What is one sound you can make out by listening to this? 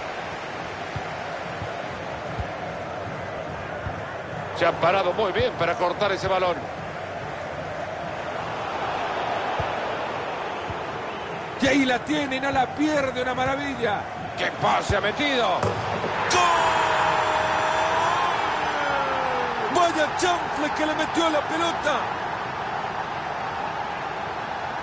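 A stadium crowd murmurs steadily throughout.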